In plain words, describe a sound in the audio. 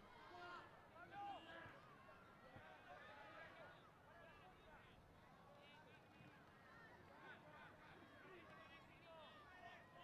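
A ball is kicked on a grass field.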